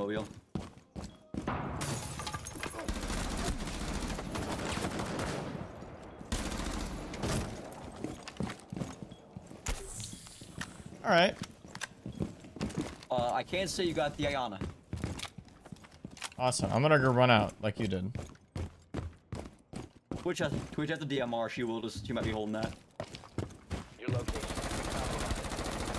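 Rapid gunfire bursts from a rifle, close and loud.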